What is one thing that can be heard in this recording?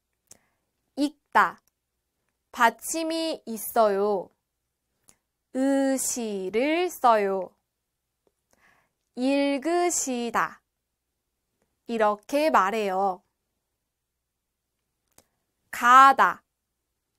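A young woman speaks calmly and clearly into a close microphone, in short phrases with pauses.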